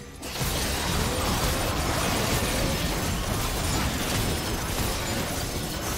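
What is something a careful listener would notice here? Game spell effects crackle and whoosh during a fight.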